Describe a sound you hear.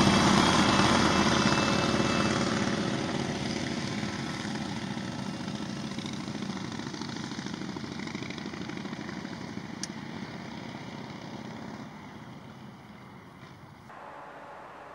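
Motorcycle engines rumble past and fade into the distance.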